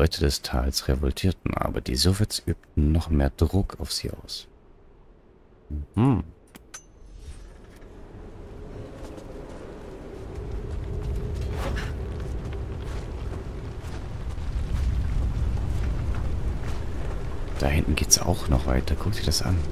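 A man talks with animation into a headset microphone, close by.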